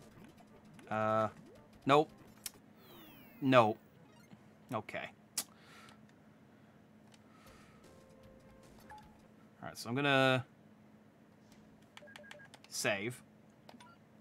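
Electronic game tones chime in short bursts.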